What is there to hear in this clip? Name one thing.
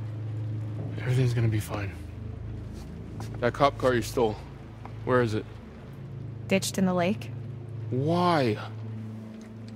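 A man speaks tensely and then shouts a question.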